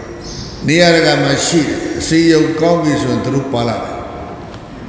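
An elderly man reads out slowly and steadily into a microphone.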